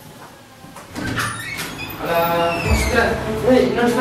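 A door clicks and swings open.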